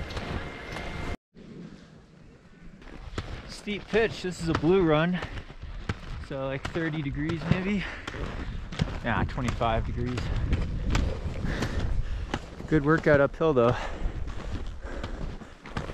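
Skis slide and crunch over snow.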